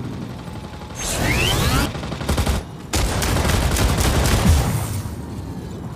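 Heavy guns fire in rapid, roaring bursts.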